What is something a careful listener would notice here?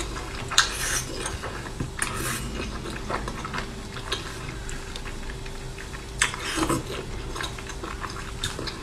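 A young woman chews food noisily and smacks her lips close to a microphone.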